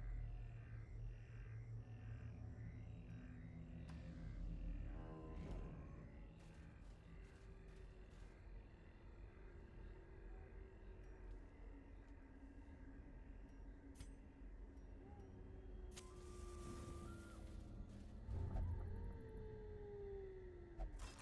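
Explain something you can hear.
Low, eerie music drones steadily.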